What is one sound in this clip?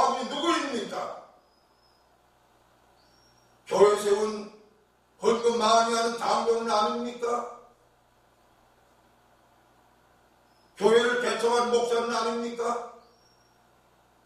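An elderly man preaches into a microphone in short, emphatic phrases with long pauses.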